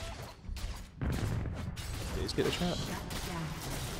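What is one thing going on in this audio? Magic blasts whoosh and crackle in a fight.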